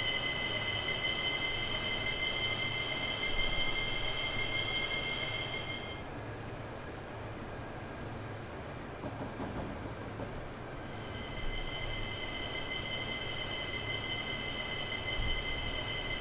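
An electric locomotive's motors whine high and steady.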